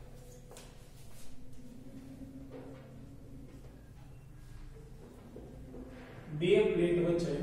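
A man speaks calmly, as if lecturing, close by.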